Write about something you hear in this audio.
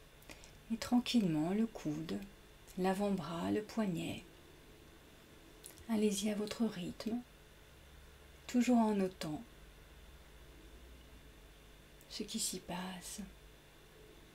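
A young woman speaks calmly and softly into a microphone, with pauses.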